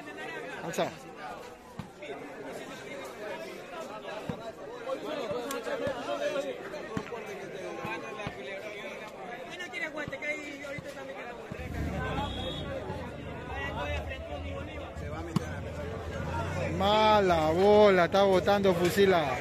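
A large outdoor crowd chatters and calls out.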